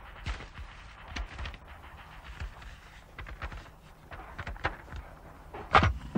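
Paper rustles in a woman's hands.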